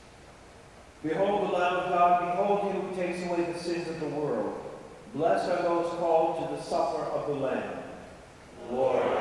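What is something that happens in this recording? A man chants in a sung voice through a loudspeaker, echoing in a large hall.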